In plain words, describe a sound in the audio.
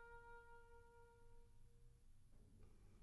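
An oboe holds a single steady note, then stops.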